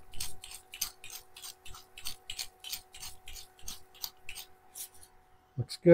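A hand pepper grinder crunches as it is twisted in short turns.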